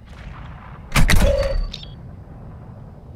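A metal refrigerator door swings open with a loud clunk.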